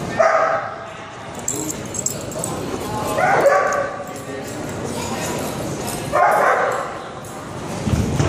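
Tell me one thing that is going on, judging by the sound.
Dogs growl and snarl in rough play.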